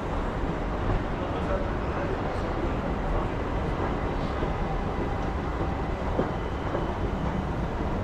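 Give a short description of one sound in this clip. Footsteps echo in a large hall.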